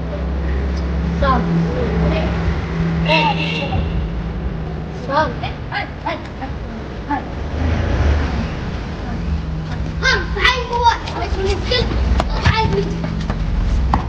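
A young boy talks excitedly nearby.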